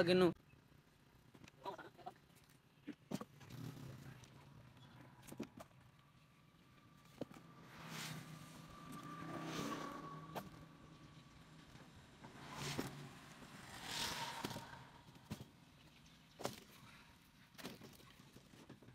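Wooden logs knock and thud as they are tossed onto a pile.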